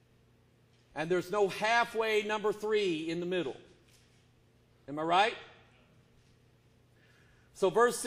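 A middle-aged man preaches forcefully through a microphone.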